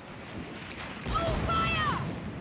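Cannons fire with heavy booms.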